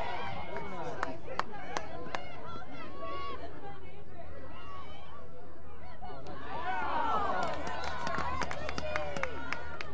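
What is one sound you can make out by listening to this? Lacrosse sticks clack against each other.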